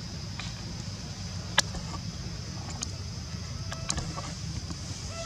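A small monkey gives short, high squeaks close by.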